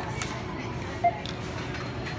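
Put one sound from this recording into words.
A card terminal gives a short electronic beep.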